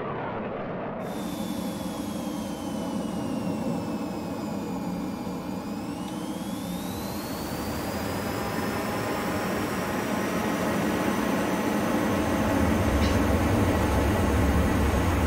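A jet engine whines steadily, its pitch dipping and then rising.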